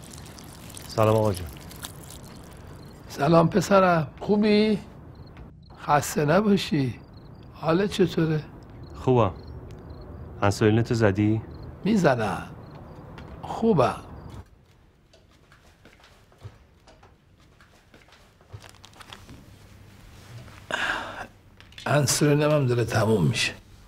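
A younger man speaks in a low voice.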